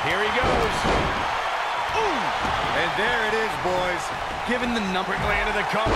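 Wrestlers' bodies thud onto the ring mat.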